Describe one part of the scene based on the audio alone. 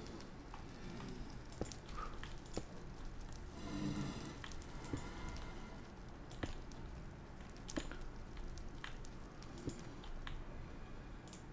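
Stone blocks crack and break in quick, repeated knocks.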